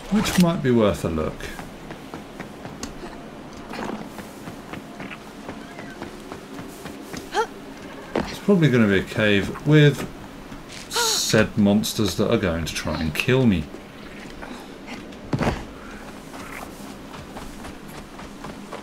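Footsteps run over dirt and gravel.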